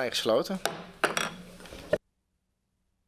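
A gavel bangs several times on a wooden block.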